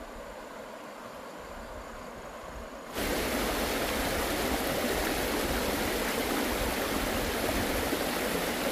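A shallow stream rushes over rocks.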